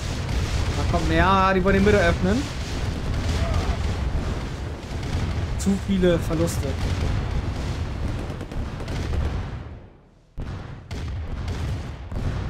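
Gunfire and explosions rumble steadily from a battle.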